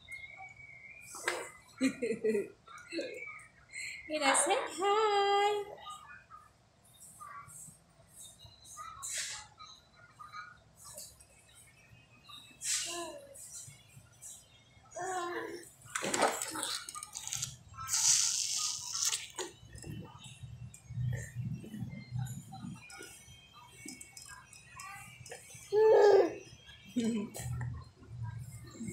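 A baby chews and smacks its lips on a snack.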